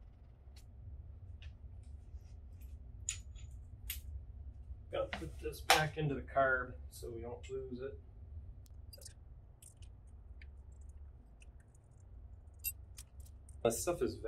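Metal tools clink and click.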